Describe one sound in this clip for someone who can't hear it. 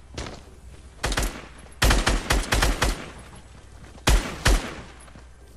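Sharp game gunshots crack in quick bursts.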